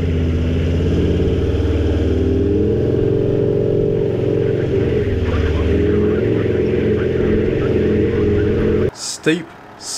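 A vehicle engine drones steadily up close.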